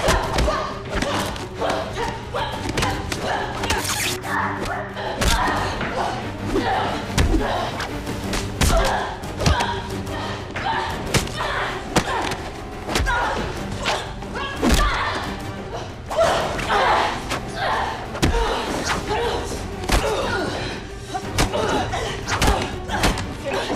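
A woman grunts and gasps with effort.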